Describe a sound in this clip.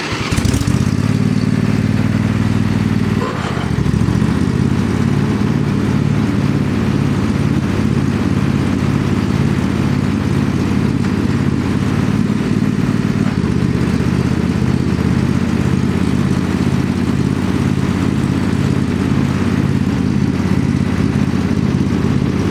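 A small engine runs close by with a steady, low chugging rumble.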